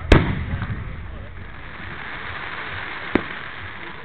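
Fireworks crackle and fizzle after bursting.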